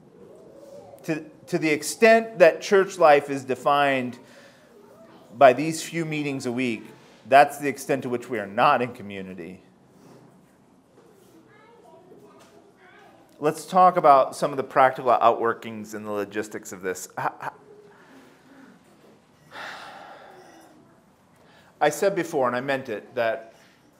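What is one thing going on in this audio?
A middle-aged man speaks calmly into a microphone, pausing often.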